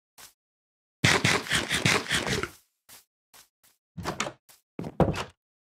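Wooden blocks thump and knock as they are placed.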